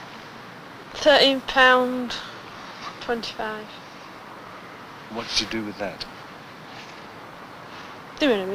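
A young woman speaks softly and haltingly, close by.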